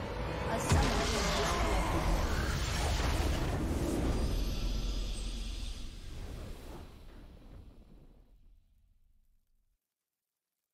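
A triumphant game victory fanfare swells with a deep rumble and slowly fades out.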